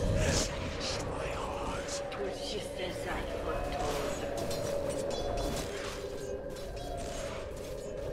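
Magic spells whoosh and crackle in a busy fantasy battle.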